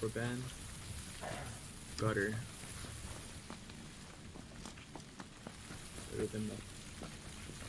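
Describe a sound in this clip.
A man talks casually into a close microphone.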